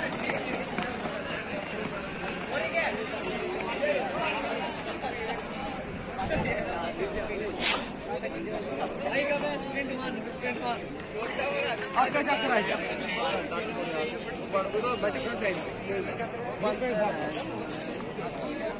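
A crowd of young people chatters and shouts outdoors.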